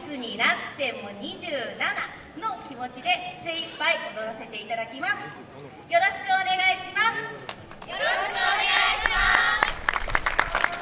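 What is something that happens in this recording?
A group of young women chant and call out loudly in rhythm.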